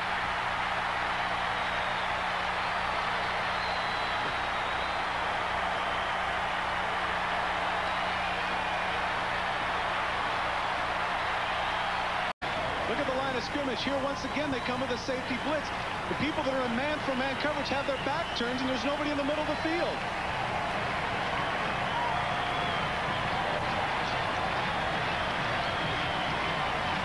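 A large crowd roars and cheers loudly.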